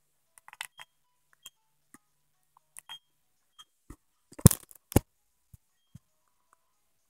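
A finger taps on a handheld game console's touchscreen.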